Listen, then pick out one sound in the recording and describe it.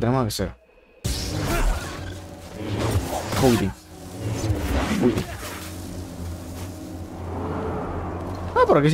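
Lightsabers hum and swing in a fight.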